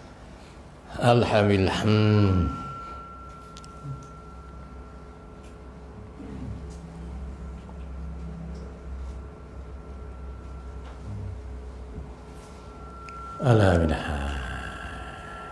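An elderly man chants loudly through a microphone, with echo.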